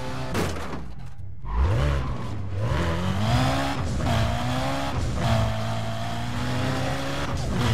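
A car engine revs hard, rising and falling in pitch as gears shift.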